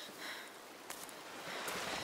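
Water flows gently nearby.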